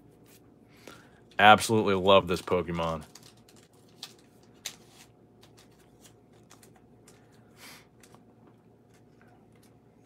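A plastic card sleeve crinkles.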